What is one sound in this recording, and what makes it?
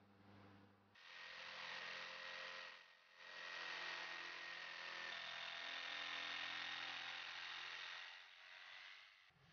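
An electric jigsaw buzzes steadily as it cuts through a board.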